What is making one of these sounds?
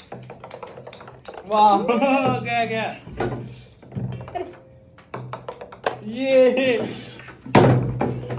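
A small plastic ball bounces with light clicks on a table.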